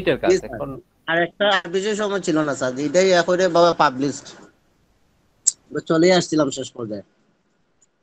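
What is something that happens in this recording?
Another young man answers calmly over an online call.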